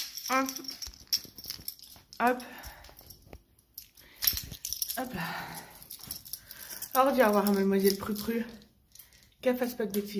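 A young woman speaks close to a microphone, calmly with pauses.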